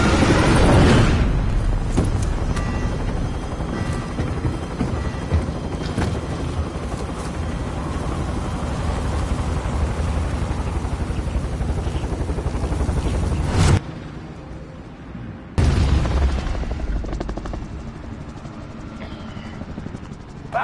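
A helicopter engine roars and its rotor thumps steadily.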